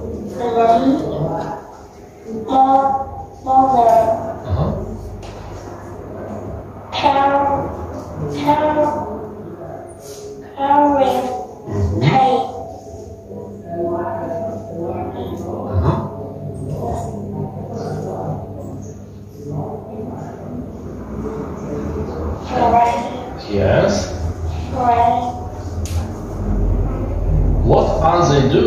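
A young girl answers softly, close by.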